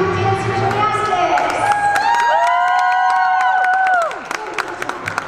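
A crowd of young girls cheers and shrieks loudly in a large echoing hall.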